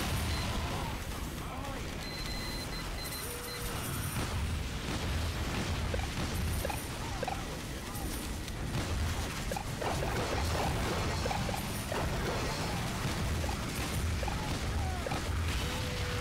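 A minigun fires in a rapid, rumbling stream.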